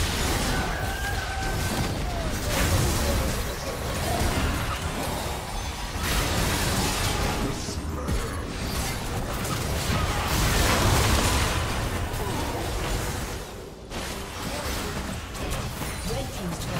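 Magic blasts and clashing hits from a video game battle sound in quick succession.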